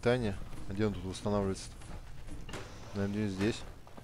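A heavy metal door slides open.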